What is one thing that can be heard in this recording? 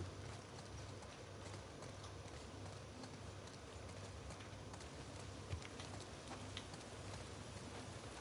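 Footsteps walk steadily on a hard floor.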